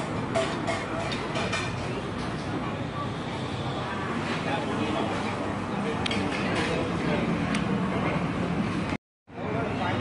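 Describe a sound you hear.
Men chat nearby in a busy place.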